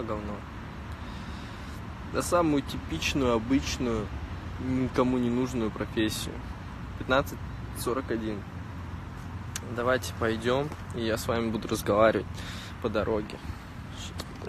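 A young man talks casually and close to a phone microphone.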